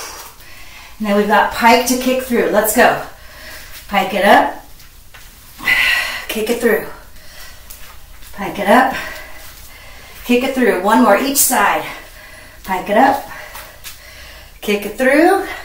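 A woman speaks calmly and clearly in short bursts, close to a microphone.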